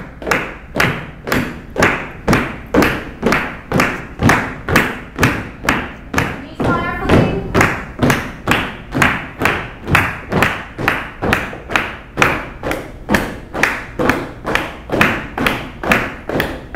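Feet stomp in a steady rhythm on a wooden floor.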